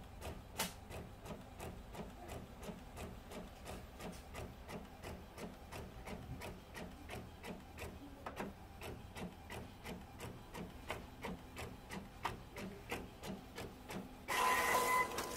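A printer whirs and clicks rapidly as it feeds out a page.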